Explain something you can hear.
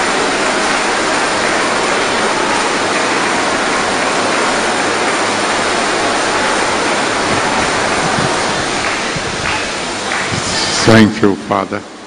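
A large crowd makes loud noise together in a big echoing hall.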